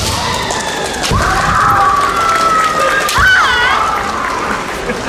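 Young women in kendo armour shout sharp kiai in a large echoing hall.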